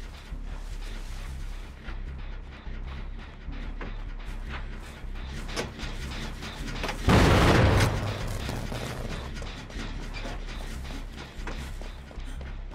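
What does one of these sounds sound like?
Footsteps run quickly over leaves and soft ground.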